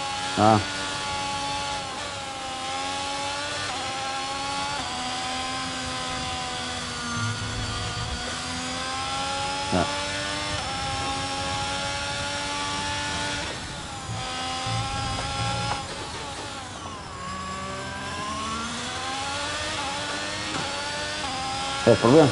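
A racing car engine whines at high revs, rising and falling as the car shifts gears.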